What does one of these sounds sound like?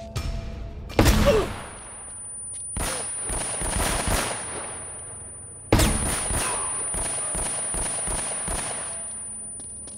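Pistol shots ring out in quick bursts, echoing.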